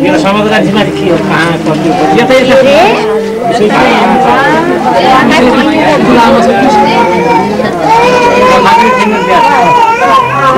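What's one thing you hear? A group of people sing together close by.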